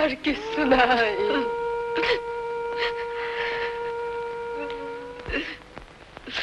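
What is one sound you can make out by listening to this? A young woman wails and sobs close by.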